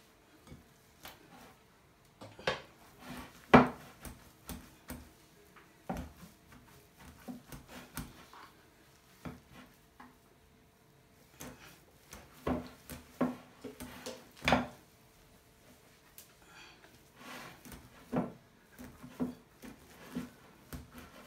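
A spoon mashes potatoes in a bowl.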